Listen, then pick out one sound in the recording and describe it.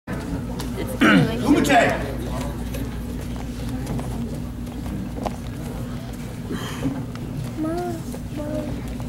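Bare feet shuffle and thud on a mat.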